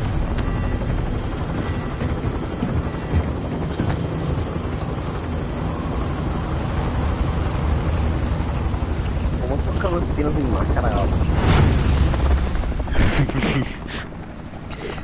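A helicopter engine drones steadily with a deep rumble.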